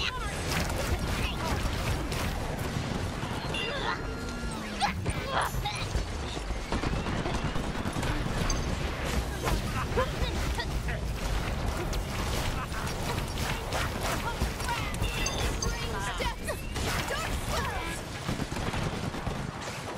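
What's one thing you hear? Rapid energy blasts and gunfire crackle and boom.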